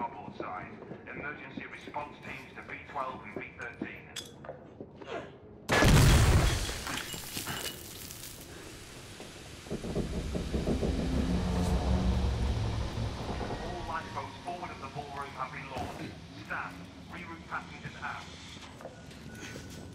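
Footsteps clatter on a metal walkway.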